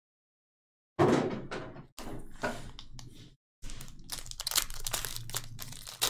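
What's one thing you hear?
Gloved hands rustle and crinkle a foil pack.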